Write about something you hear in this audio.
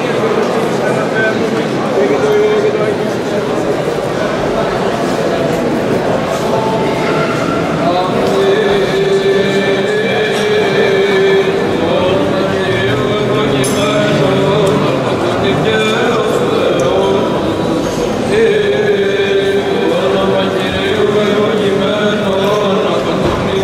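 A man chants slowly and steadily in a large echoing hall.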